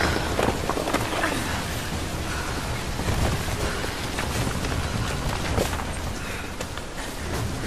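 Footsteps scuff over rock.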